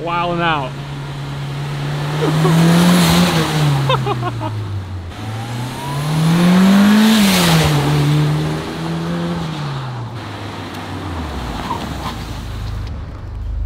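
A car engine revs and roars as the car drives past.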